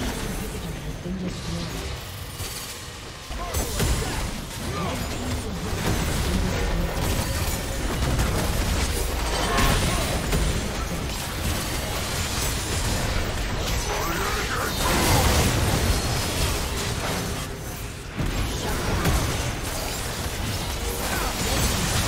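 Game battle effects boom and clash with dense spell blasts.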